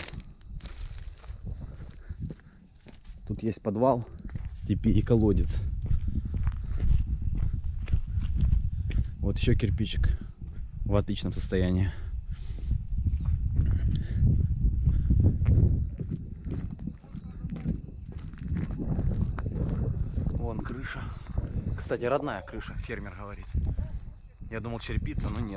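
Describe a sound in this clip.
Footsteps crunch on dry ground and grass.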